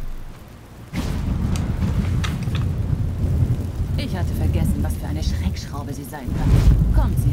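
A fire bursts up and roars loudly.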